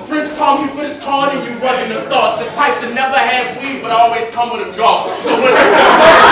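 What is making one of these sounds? A young man raps loudly through a microphone.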